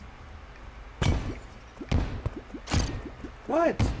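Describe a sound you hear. Explosions boom and rumble in a video game.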